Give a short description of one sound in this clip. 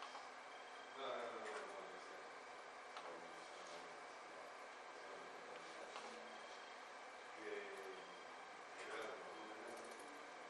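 A young man speaks briefly and calmly in an echoing room.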